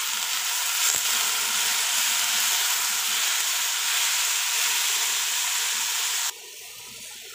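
Vegetables sizzle loudly in a hot pan.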